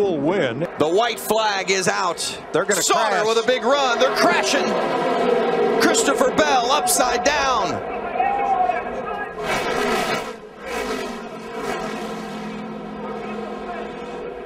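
Racing truck engines roar loudly, rising and falling in pitch as they speed past.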